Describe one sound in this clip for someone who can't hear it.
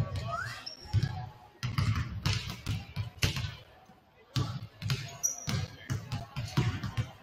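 Basketballs bounce on a hardwood floor, echoing in a large hall.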